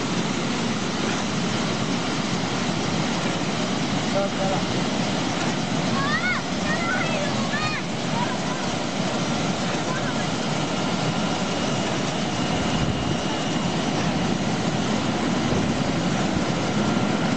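Water bubbles and churns loudly and steadily.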